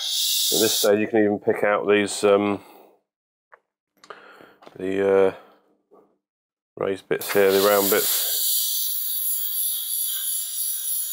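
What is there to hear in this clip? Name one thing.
An airbrush hisses steadily as it sprays paint.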